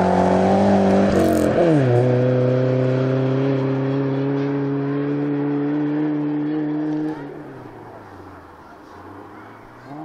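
A car engine revs hard and pulls away into the distance.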